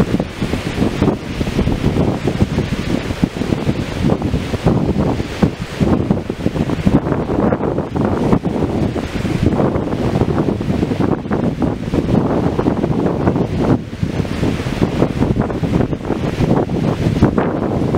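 Small waves wash on a shore.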